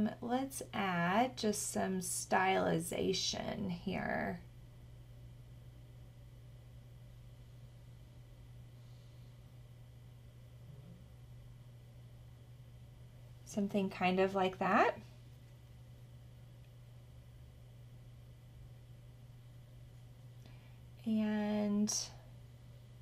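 A young woman talks calmly close to a microphone, in short bursts.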